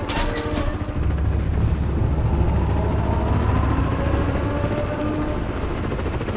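Low, steady rumbling echoes through a narrow metal duct.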